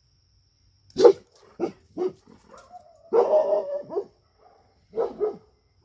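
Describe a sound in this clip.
A dog barks loudly in short bursts.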